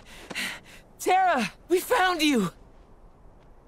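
A boy shouts excitedly nearby.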